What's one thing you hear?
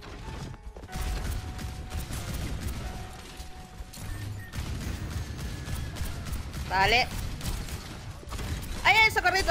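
Rapid gunshots crack in a video game.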